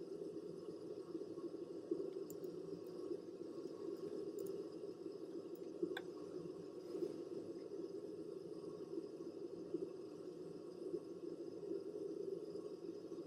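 A jet airliner's engines roar steadily as it climbs.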